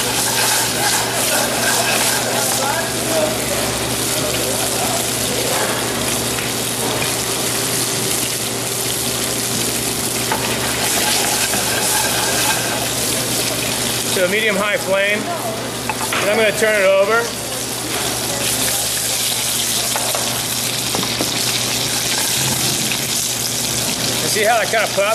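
Fish sizzles steadily in hot oil in a pan.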